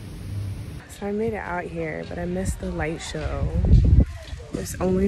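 A young woman talks cheerfully, close to the microphone.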